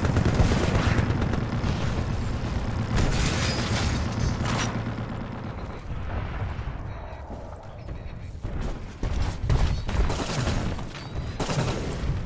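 Heavy gunfire and blasts boom in a loud battle.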